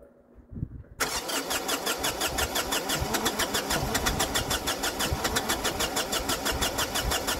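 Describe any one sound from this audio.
A tractor's diesel engine catches and runs with a steady rapid chugging.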